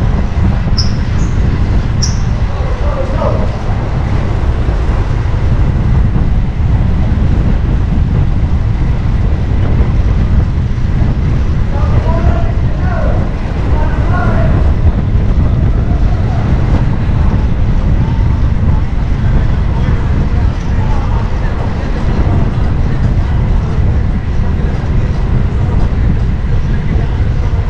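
Car engines idle and hum in slow traffic nearby.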